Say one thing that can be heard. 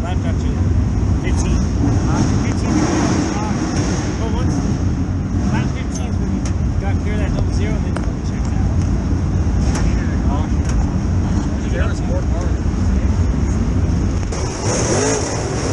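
Race car engines rumble loudly close by.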